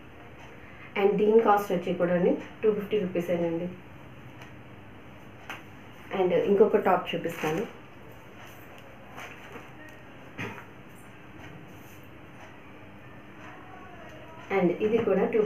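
A woman speaks calmly and close by, pausing now and then.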